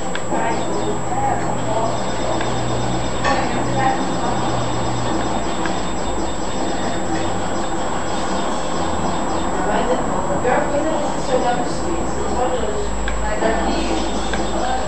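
Video game music plays through a television speaker.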